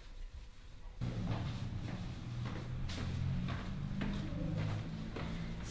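Footsteps step down a stairway.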